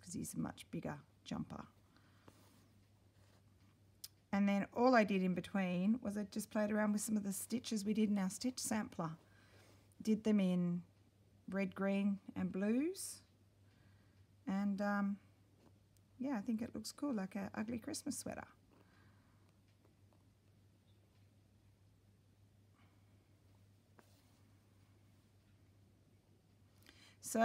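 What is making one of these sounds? Fabric rustles softly as hands handle and stitch it.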